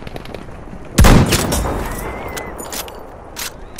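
An anti-tank rifle fires a single heavy shot that echoes away.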